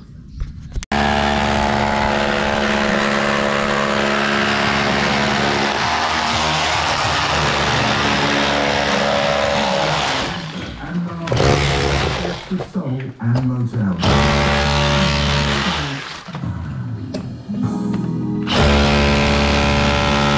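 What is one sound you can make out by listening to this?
A power chisel hammers loudly at plaster and masonry.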